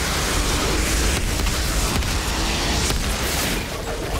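Fiery explosions burst and roar.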